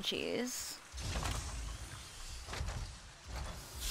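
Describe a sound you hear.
Heavy metal sliding doors rumble open.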